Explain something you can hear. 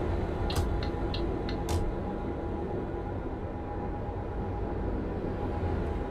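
Tyres roll on the road with a low rumble.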